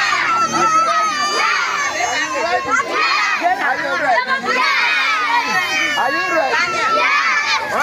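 A young man calls out with animation.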